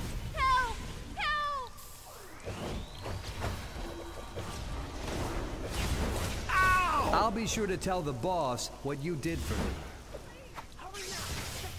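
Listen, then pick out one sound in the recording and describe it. Energy crackles and hums around a glowing shield.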